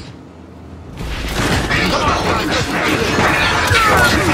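Gunfire and battle noise roar loudly.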